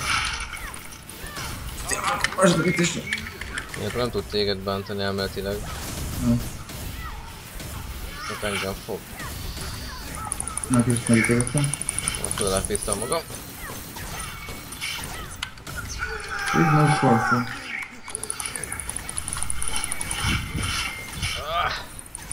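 Game spells crackle and blast during a fight.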